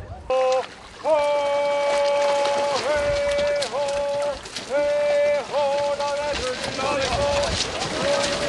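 A group of people sing a long, steady chant together outdoors.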